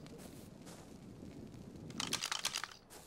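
A torch fire crackles and hisses.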